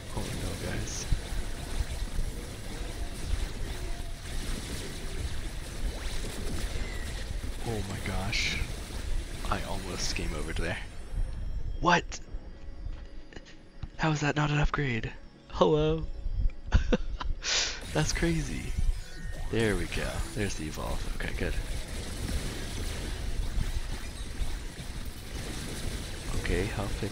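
Rapid electronic blasts and impacts crackle in a busy fight.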